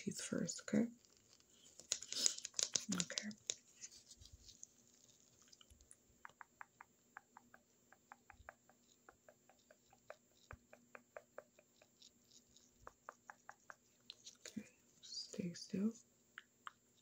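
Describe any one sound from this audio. A young woman whispers close to a microphone.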